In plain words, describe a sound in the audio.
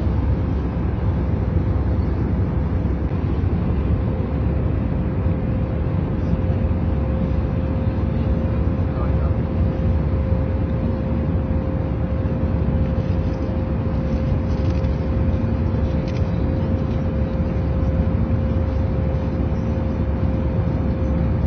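A steady, deep roar of aircraft engines fills an airplane cabin.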